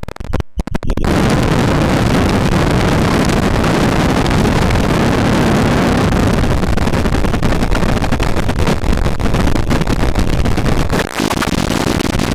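A modular synthesizer roars with dense, harsh noise.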